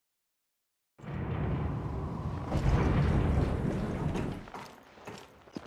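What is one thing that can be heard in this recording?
An elevator rumbles and hums loudly.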